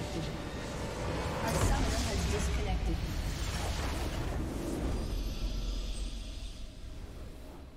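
A heavy explosion booms and crackles, then fades.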